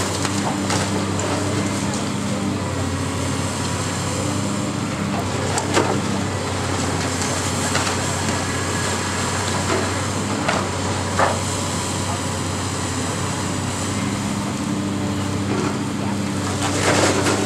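Concrete and debris crack and crash down as a demolition claw tears at a building.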